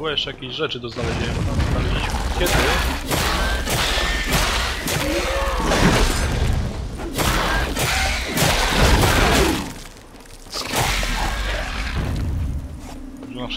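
Swords clash and strike in a fast fight.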